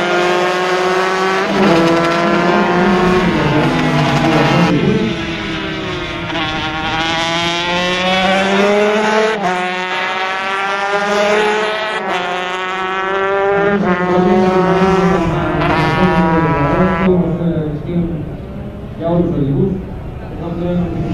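Motorcycle engines scream at high revs, rising and falling in pitch as they shift gears.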